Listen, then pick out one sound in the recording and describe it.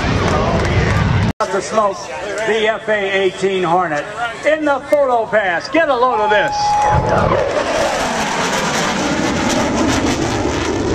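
A jet engine roars overhead.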